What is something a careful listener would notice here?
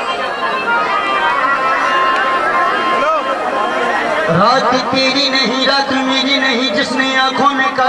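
A harmonium plays a sustained melody.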